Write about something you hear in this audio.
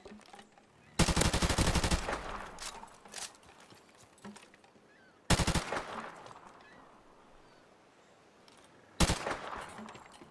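A rifle fires rapid bursts of shots that echo briefly.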